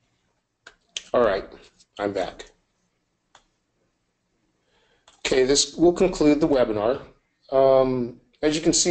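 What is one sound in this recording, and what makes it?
A man speaks calmly into a microphone, heard as if over an online call.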